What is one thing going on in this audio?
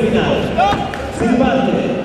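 A man calls out loudly to fighters.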